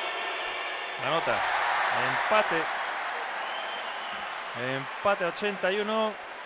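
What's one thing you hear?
A crowd bursts into loud cheers.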